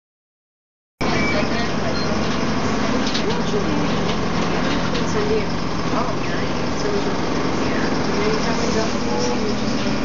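A bus engine rumbles steadily, heard from inside the bus.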